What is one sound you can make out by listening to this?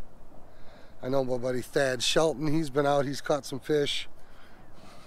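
A middle-aged man speaks calmly close to the microphone.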